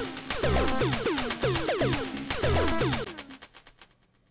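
An electronic beat plays loudly with thumping drums and a pitched synth melody.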